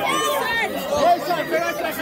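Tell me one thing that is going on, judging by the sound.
A young man shouts excitedly.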